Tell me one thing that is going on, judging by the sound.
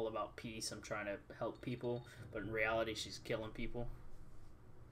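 A middle-aged man speaks calmly and quietly.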